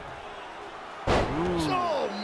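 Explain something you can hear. A wrestler slams onto the ring mat with a heavy thud.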